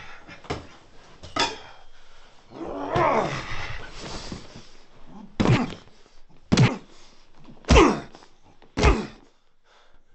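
A middle-aged man grunts with effort close by.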